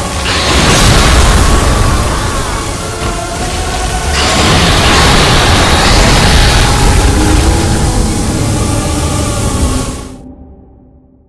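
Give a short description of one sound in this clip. Electricity crackles and roars loudly.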